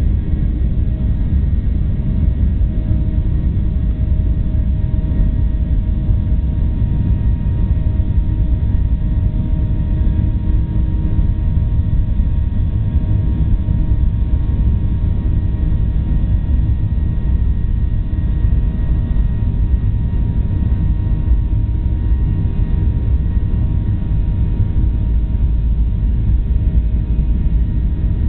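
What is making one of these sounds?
A jet engine roars loudly and steadily, heard from inside a plane cabin.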